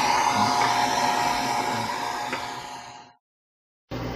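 A hair dryer blows with a loud, steady whir.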